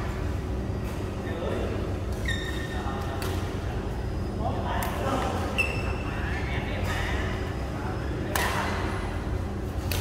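Shuttlecocks are struck with rackets in sharp, repeated pops in a large echoing hall.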